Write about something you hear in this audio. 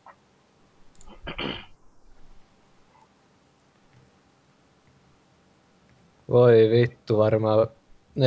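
A young man speaks briefly into a close microphone, then talks loudly with animation.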